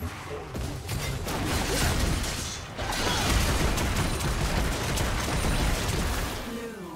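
Game spell effects burst and crackle in a busy fight.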